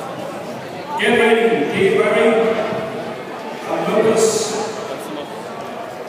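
A man shouts short commands loudly.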